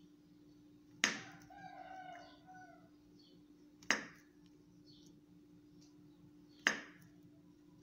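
A knife cuts through soft fruit and taps on a plastic board.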